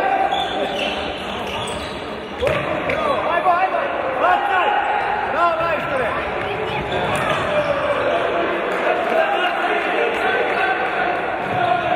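Players' shoes squeak on a wooden floor.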